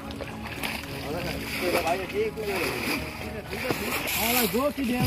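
Feet squelch and splash through wet mud.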